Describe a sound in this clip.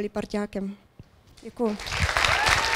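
A woman speaks through a microphone in a large hall.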